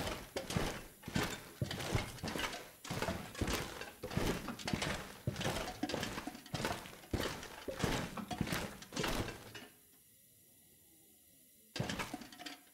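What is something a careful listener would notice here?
Footsteps crunch steadily on a gritty floor.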